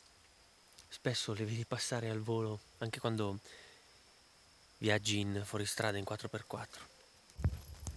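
A man speaks quietly and close by.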